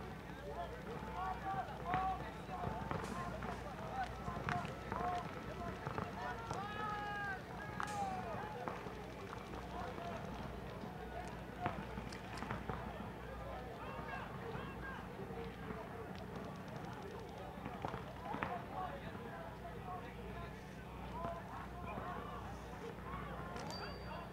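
A crowd of people chatters and calls out outdoors at a distance.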